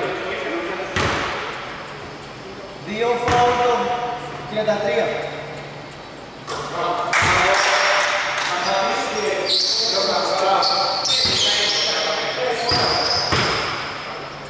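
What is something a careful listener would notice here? A basketball thumps on the floor.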